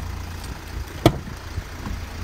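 A van's front door unlatches and opens with a click.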